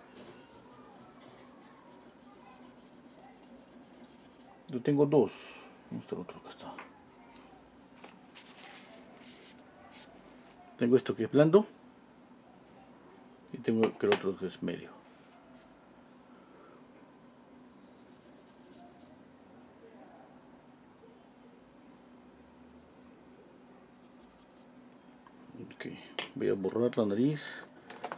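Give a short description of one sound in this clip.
A pencil scratches and rubs softly on paper.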